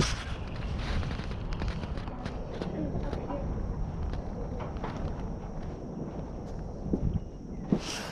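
Cloth rubs and rustles against the microphone.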